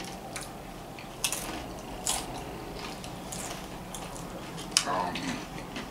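Crisps crunch as people chew them.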